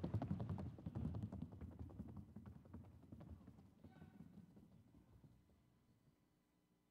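A horse's hooves tap rapidly on packed dirt.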